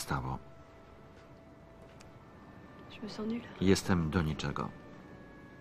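A young woman speaks softly and emotionally, close by.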